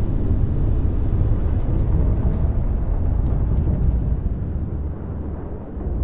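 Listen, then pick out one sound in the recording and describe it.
A spaceship engine rumbles deeply and steadily.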